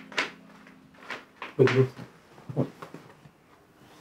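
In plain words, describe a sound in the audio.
A man speaks softly and close by.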